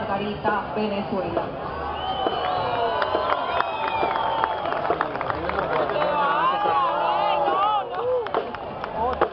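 A crowd of young people chatters and calls out nearby outdoors.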